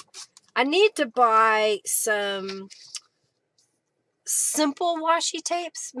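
Paper rustles as it is handled.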